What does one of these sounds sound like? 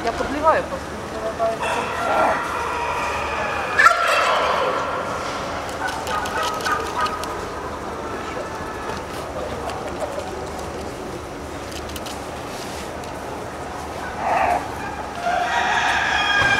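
A small animal scrambles about a wire cage, rattling the mesh.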